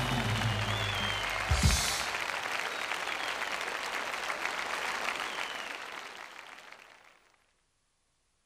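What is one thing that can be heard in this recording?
A large crowd in a big arena cheers and applauds, then fades away.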